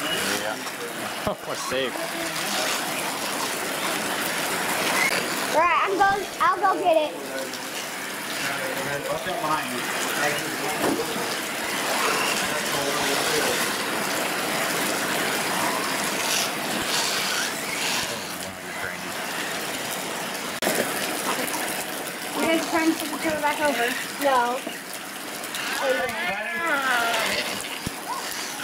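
Tyres crunch and spray over wet dirt.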